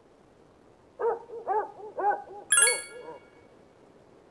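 Short electronic chimes sound as a game menu choice is made.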